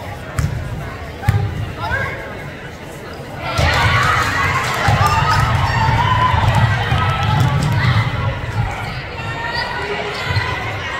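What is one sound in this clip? A basketball bounces on a hard wooden floor in a large echoing gym.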